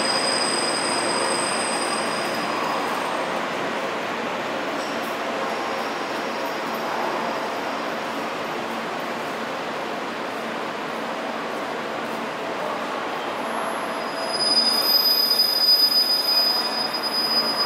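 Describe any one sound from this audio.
A train slowly pulls in, its motors humming.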